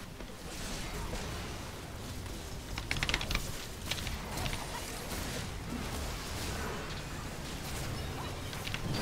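Game spell effects crackle and burst in quick succession.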